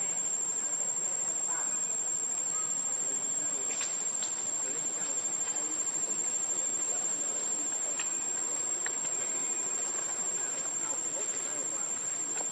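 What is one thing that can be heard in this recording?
Dry leaves rustle and crackle as small monkeys scamper over the ground.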